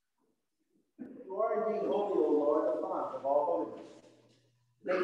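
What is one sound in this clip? An elderly man chants at the altar through a microphone, in a large echoing room.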